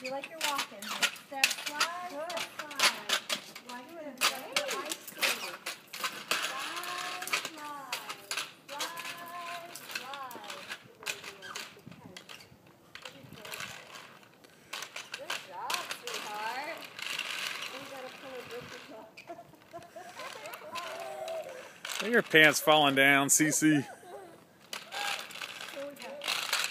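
Roller skate wheels roll and clatter on pavement.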